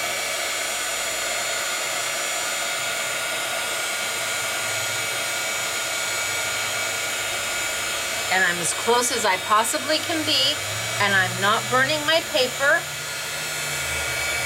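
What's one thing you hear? A heat tool blows with a steady rushing hiss.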